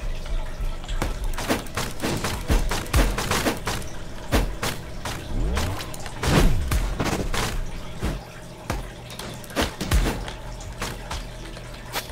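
Game weapons swing and strike with sharp, rapid hits.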